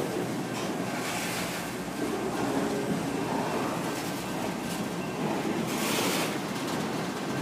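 Steel wheels squeal on the rails.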